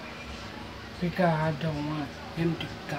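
A young woman speaks close by, softly.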